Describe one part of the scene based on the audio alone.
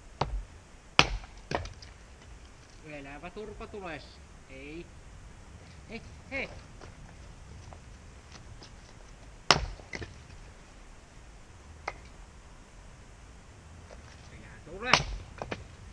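An axe splits wood with sharp cracks.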